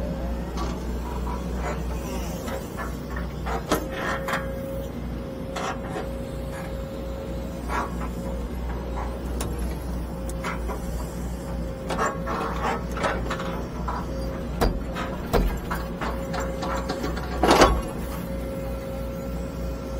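An excavator's diesel engine rumbles steadily close by, heard from inside the cab.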